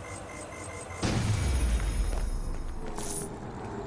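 A loud explosion booms with a deep rumble.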